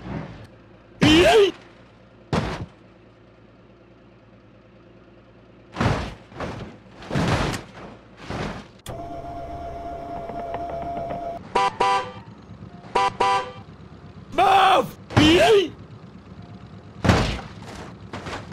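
A vehicle slams into a metal barrier with loud crashing bangs.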